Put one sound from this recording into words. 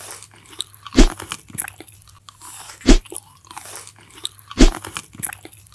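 Tweezers pluck something out with sharp pops.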